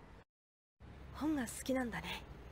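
A boy speaks calmly.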